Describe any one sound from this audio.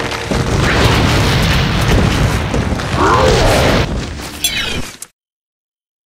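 A loud explosion roars and rumbles with crackling flames.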